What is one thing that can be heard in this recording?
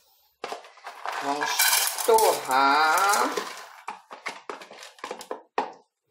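Dry grains pour and rattle into a metal pot.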